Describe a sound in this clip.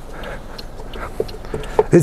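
A man settles into a car seat with soft knocks and rustles.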